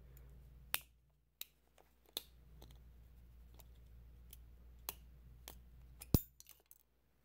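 Small plastic clicks and taps sound close by as a man handles a small object.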